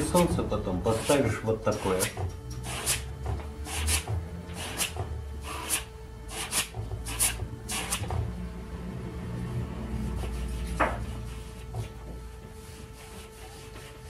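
A brush dabs and scrubs against a canvas.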